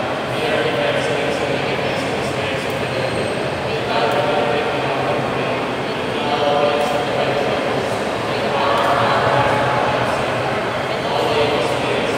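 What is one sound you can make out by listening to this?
A choir of men and women sings together in a large echoing hall.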